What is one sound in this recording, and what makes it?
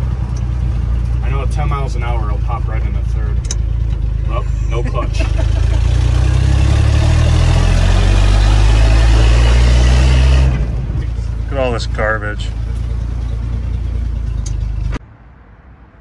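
An engine rumbles and revs up to a loud roar, then settles.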